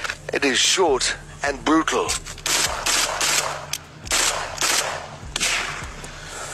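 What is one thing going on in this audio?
A rifle fires loud shots in quick bursts outdoors.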